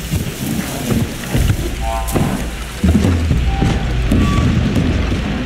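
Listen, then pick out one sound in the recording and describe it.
Tall grass rustles and swishes.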